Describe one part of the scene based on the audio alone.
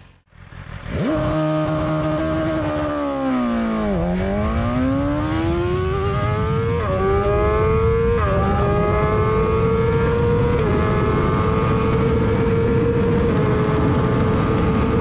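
A motorcycle engine roars as it accelerates hard, rising in pitch and dropping with each gear change.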